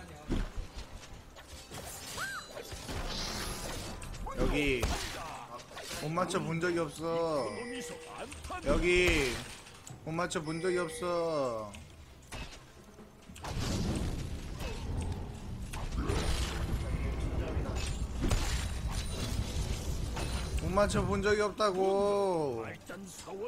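Game sound effects of spells and blows clash loudly.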